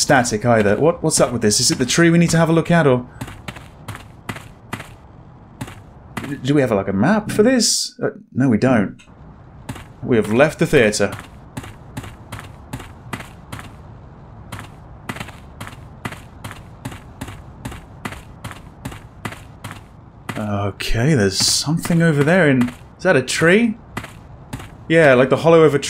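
Footsteps crunch steadily on rough ground.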